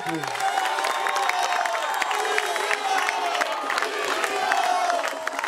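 A crowd cheers and chants loudly outdoors.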